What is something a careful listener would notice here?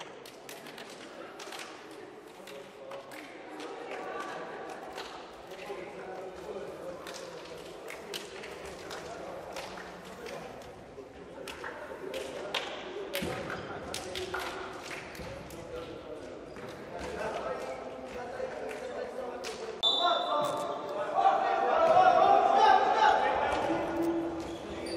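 Men's voices chatter and call out in a large echoing hall.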